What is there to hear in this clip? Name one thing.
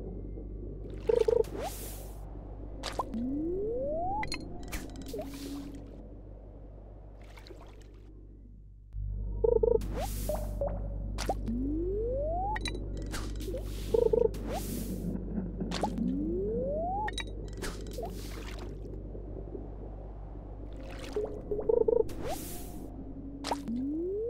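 A fishing reel whirs and clicks as a fish is pulled in.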